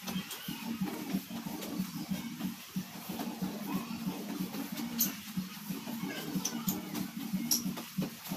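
Running shoes thud on a tiled floor as a man jogs on the spot.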